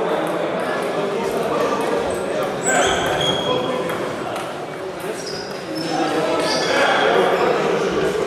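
Men's voices murmur and call out across a large echoing hall.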